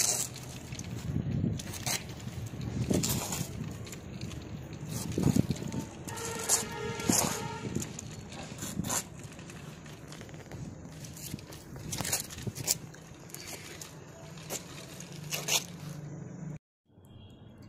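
Plastic toy wheels rattle and scrape over rough concrete.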